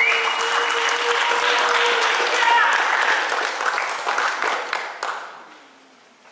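A crowd cheers and chatters loudly in an echoing hall.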